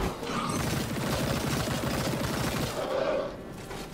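A heavy metallic weapon swings and strikes.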